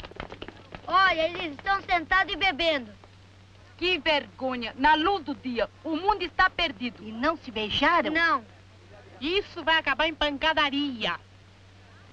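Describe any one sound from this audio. A woman talks loudly and excitedly.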